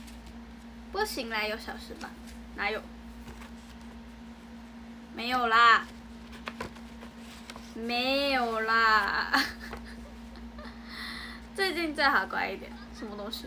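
A young woman talks brightly and close by, in short bursts.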